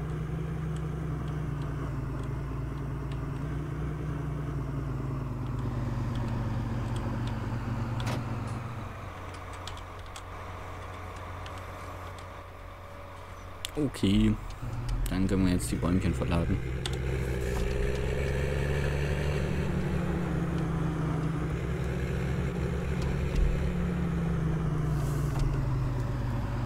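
A diesel tractor engine rumbles.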